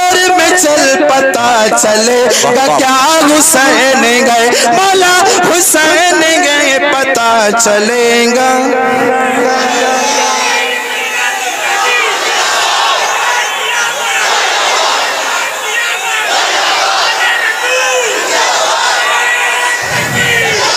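A man chants loudly and passionately into a microphone over loudspeakers in an echoing hall.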